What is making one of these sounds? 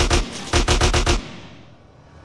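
A gun fires a rapid burst of shots.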